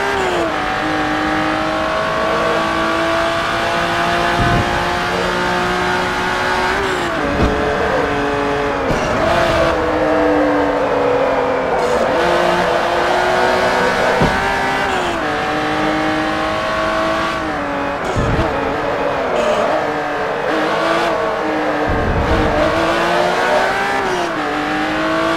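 A racing car engine roars, rising in pitch as it speeds up and dropping sharply at each gear change.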